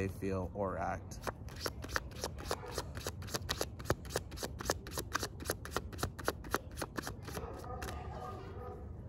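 Playing cards flick and riffle in a man's hands.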